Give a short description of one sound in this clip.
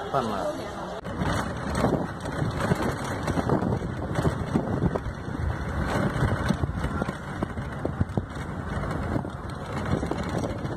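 A vehicle rumbles along a road with wind buffeting loudly.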